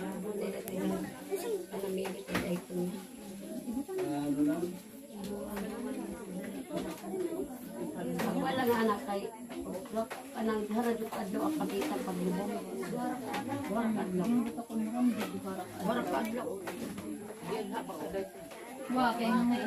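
Several women talk quietly and calmly nearby.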